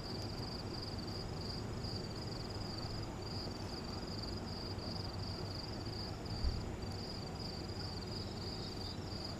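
A small fire crackles softly.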